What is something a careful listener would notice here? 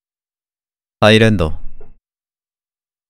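A young man exclaims briefly into a microphone.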